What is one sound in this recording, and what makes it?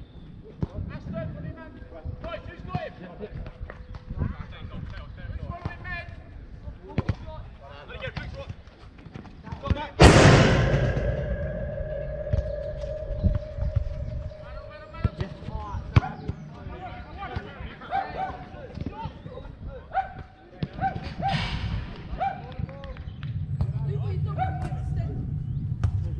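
A football thuds off a boot as it is kicked.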